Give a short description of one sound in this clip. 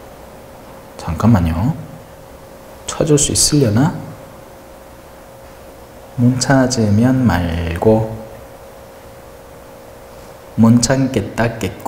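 A young man speaks calmly into a microphone in short phrases, with pauses.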